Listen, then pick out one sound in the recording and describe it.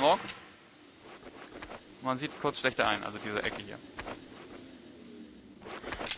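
A smoke grenade hisses steadily.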